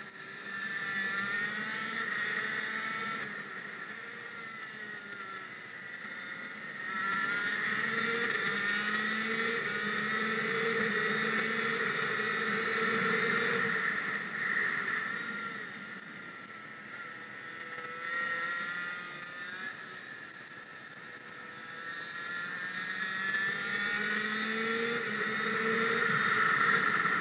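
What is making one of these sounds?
A kart engine revs up and down loudly as it races around a track.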